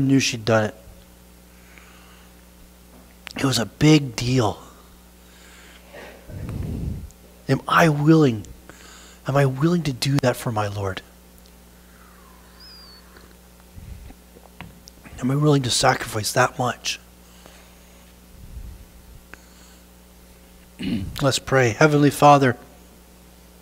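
A man speaks with animation through a microphone, in bursts with pauses, in a room with some echo.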